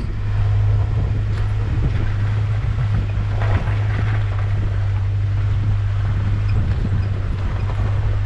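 Tyres rumble and crunch over a rough dirt track.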